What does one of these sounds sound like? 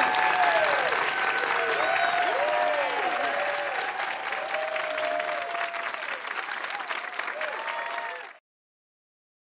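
A large audience claps loudly.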